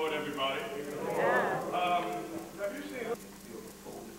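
A choir of young people sings into microphones in a large echoing hall.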